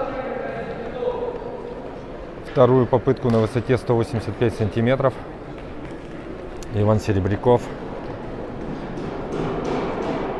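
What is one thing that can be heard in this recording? Voices murmur and echo in a large hall.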